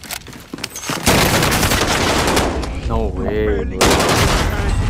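Rapid gunfire rattles loudly at close range.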